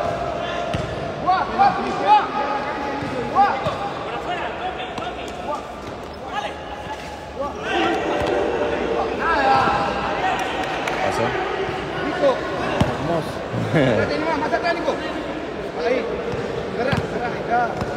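Voices of a crowd and players shout and call out across a large echoing hall.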